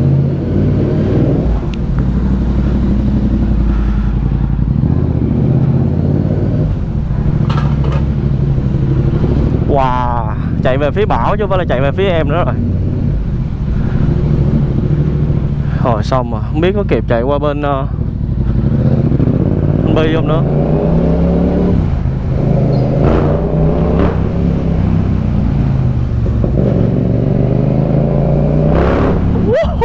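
A motorcycle engine rumbles steadily close by.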